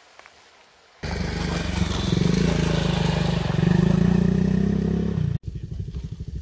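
A motorcycle engine roars as the bike rides through a shallow creek.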